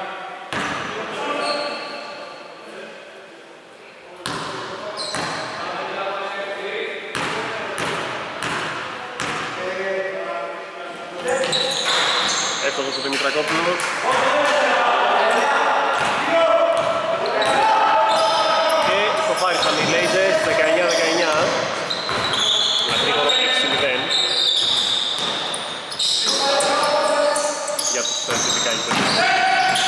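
Men shout and call out across an echoing hall.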